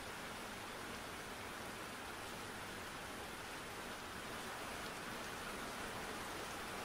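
Steady rain falls and patters.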